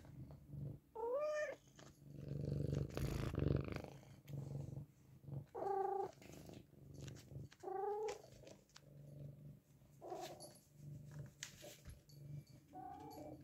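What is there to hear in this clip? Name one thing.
A cat meows close by, several times.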